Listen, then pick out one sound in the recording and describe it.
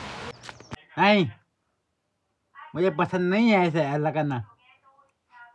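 A man talks playfully to a baby up close.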